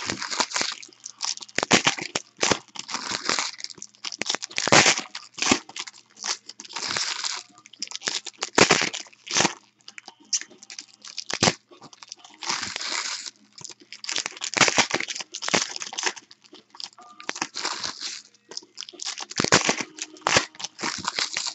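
Foil wrappers tear open.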